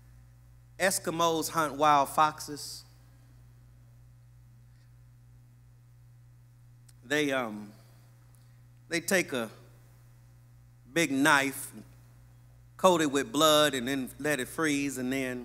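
A man speaks with emphasis into a microphone, in bursts with pauses.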